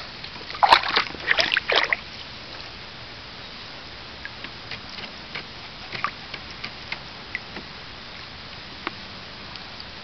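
A small dog laps up water.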